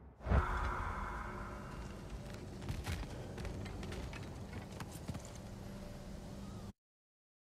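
Heavy footsteps thud on wooden boards.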